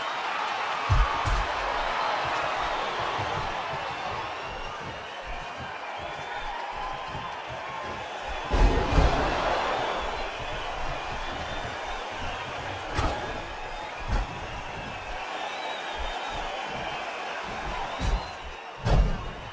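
Heavy bodies thud onto a wrestling ring.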